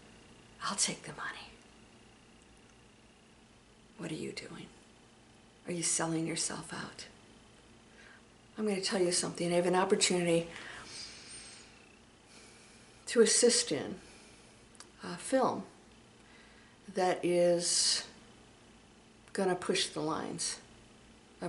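A middle-aged woman speaks close to a microphone, calmly and with pauses.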